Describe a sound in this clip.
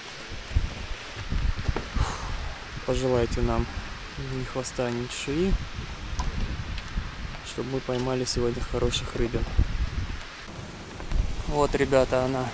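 Wind buffets a microphone in low rumbling gusts.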